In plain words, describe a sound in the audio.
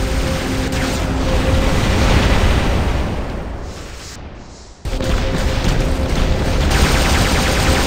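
Heavy gunfire rattles in bursts.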